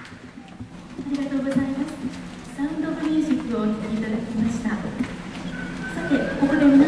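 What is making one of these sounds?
A large wind band plays in an echoing concert hall.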